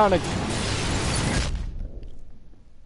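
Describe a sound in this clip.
Air rushes loudly past a falling body.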